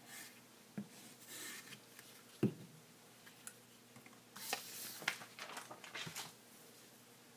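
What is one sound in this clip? Paper rustles and scrapes as it is handled.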